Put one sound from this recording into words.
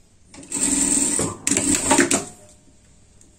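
An industrial sewing machine stitches through fabric.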